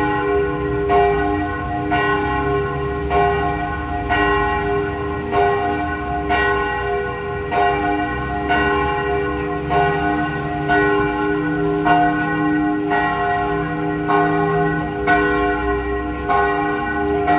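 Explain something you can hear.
Church bells ring loudly in a steady, repeating peal.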